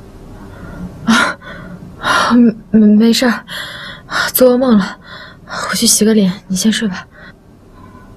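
A young woman speaks softly and tiredly close by.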